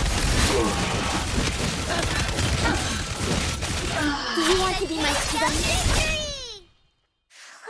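Fighting sound effects clash and burst in quick succession.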